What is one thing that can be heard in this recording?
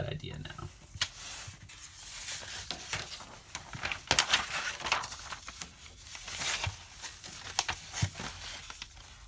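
Sheets of paper rustle and crinkle as hands shift them around.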